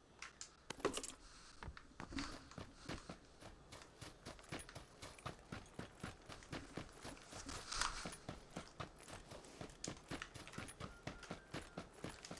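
Quick footsteps run over grass and earth.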